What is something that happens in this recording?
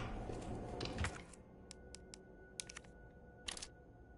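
A soft click sounds as a menu opens.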